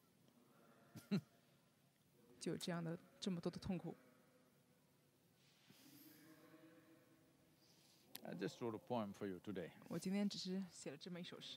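An elderly man speaks slowly and calmly, with long pauses, close to a microphone.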